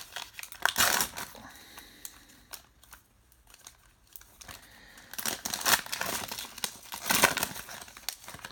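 A foil card wrapper crinkles and rustles as it is torn open.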